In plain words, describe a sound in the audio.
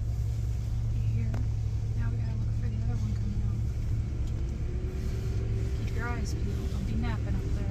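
A woman speaks and laughs excitedly nearby.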